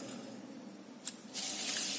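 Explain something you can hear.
A pencil scratches along a ruler on paper.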